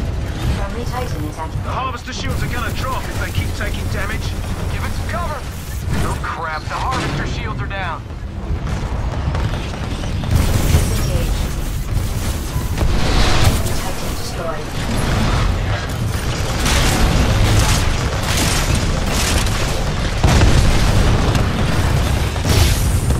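A mechanical engine rumbles low and steady.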